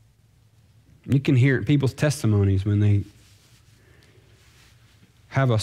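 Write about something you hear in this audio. A man speaks calmly into a microphone in a quiet, slightly echoing hall.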